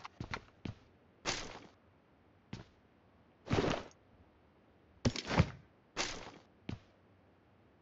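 Gear rustles in short bursts as items are picked up.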